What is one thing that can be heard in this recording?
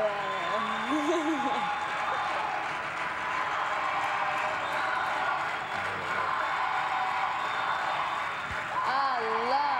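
A woman sings over music from a television.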